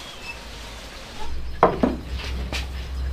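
A plate clinks onto a wooden table.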